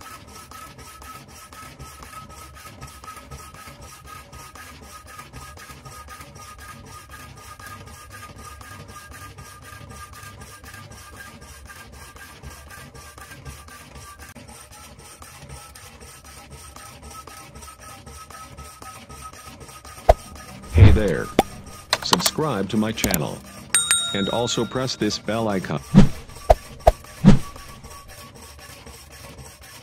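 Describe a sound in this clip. A power hacksaw blade rasps back and forth through metal in a fast, even rhythm.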